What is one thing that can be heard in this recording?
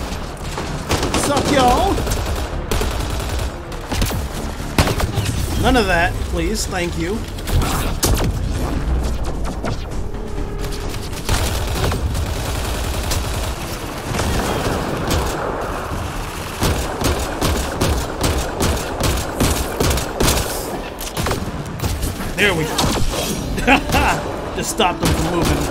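A young man talks into a headset microphone.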